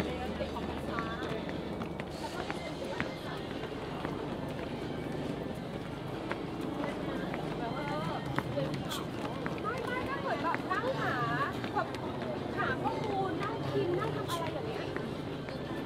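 Footsteps climb stone steps outdoors.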